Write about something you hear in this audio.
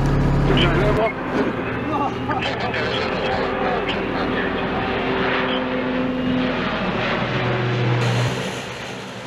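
A plane's engines drone overhead as it approaches.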